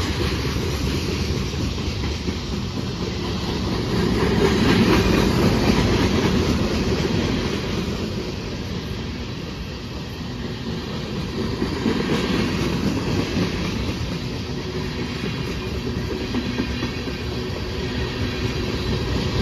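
Steel wheels squeal and clack over rail joints.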